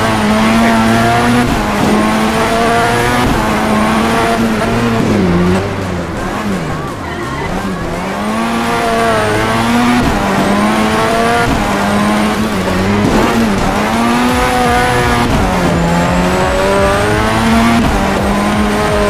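A car engine revs hard and changes pitch as it shifts gears.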